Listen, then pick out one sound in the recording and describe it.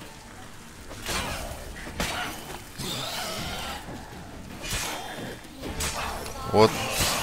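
A sword swishes and slashes in quick strikes.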